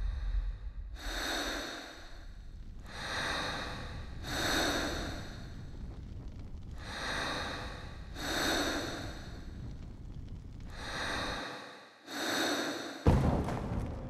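A young girl breathes slowly and softly in her sleep.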